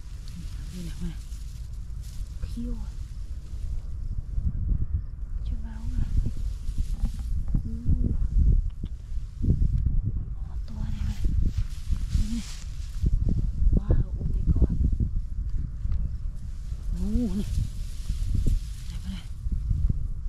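Gloved hands rustle through dry straw.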